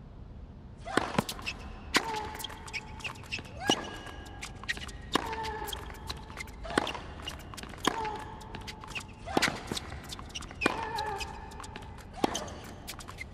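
Tennis balls are struck with sharp pops in a steady rally.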